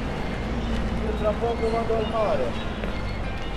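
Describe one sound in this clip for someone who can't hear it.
A man talks on a phone nearby.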